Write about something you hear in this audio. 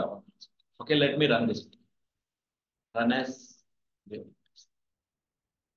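A young man speaks calmly and in short phrases into a close microphone.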